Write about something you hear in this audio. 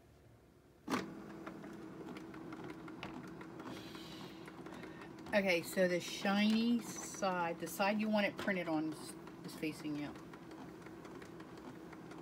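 An inkjet printer hums as it runs.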